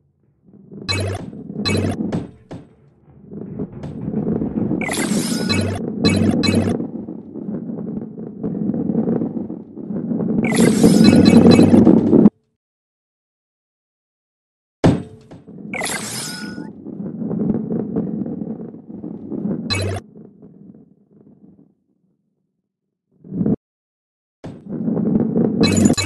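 Coins chime with bright pings as they are collected.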